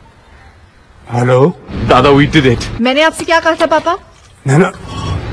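An elderly man speaks on a phone.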